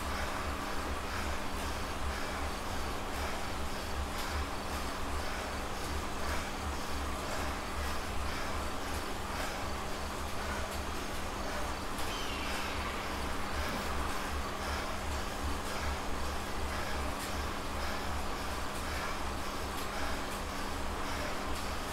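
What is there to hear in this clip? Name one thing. An indoor bike trainer whirs steadily.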